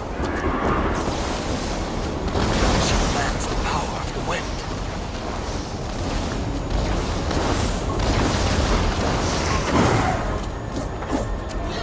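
Wind and rain roar in a storm.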